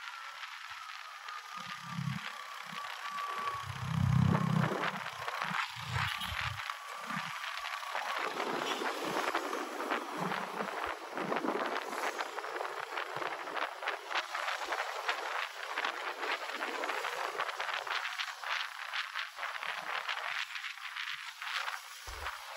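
A motorcycle engine hums steadily nearby.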